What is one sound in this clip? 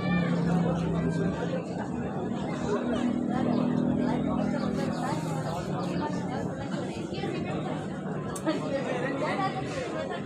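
A crowd of spectators chatters and calls out at a distance in the open air.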